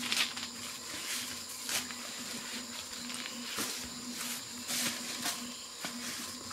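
Dry leaves crackle and rustle underfoot.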